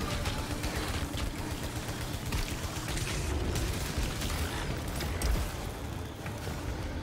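Rapid laser gunfire zaps and crackles in a video game.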